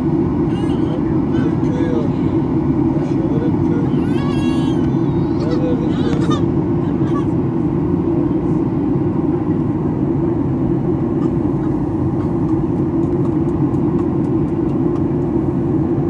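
A jet engine roars steadily inside an airliner cabin in flight.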